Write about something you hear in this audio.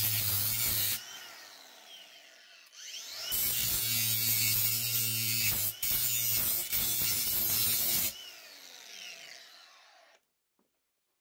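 An angle grinder's motor spins down and winds to a stop.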